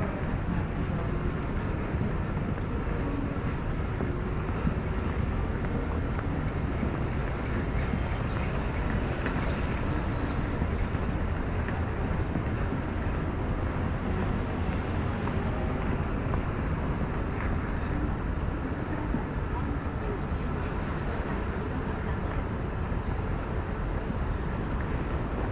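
Footsteps scuff on paving nearby.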